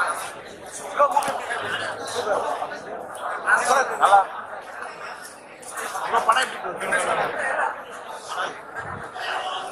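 A crowd of young people chatters and calls out nearby.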